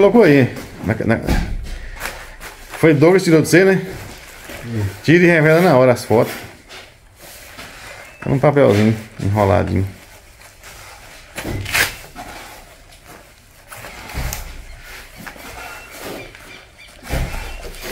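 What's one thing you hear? A zipper on a bag is opened and closed.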